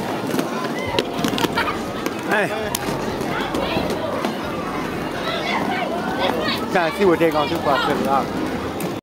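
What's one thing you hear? A crowd of young people chatters and shouts in a large echoing hall.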